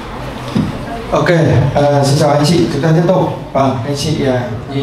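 A man speaks into a microphone through loudspeakers, echoing in a room.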